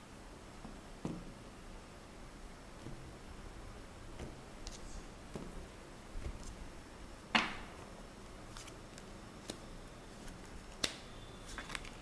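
Cards are laid down with soft taps on a wooden table.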